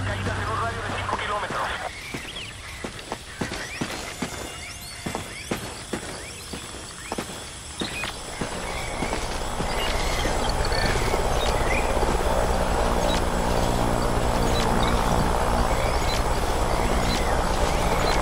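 Footsteps rustle through dense leaves.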